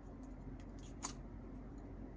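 A plastic cap clicks off a small toy bottle.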